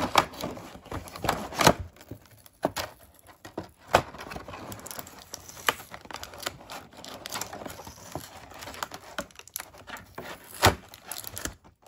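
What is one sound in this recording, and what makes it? Fingers tap and rustle against stiff plastic packaging.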